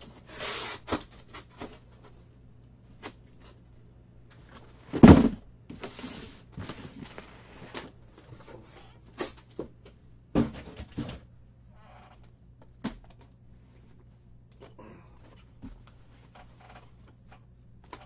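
Cardboard boxes rustle and thump as they are moved and stacked.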